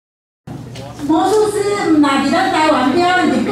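A woman speaks into a microphone through a loudspeaker in a large room.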